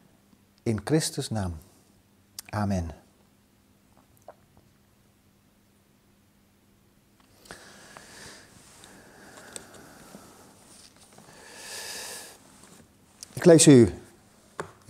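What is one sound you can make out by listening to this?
An elderly man speaks calmly and slowly into a microphone, in bursts with long pauses.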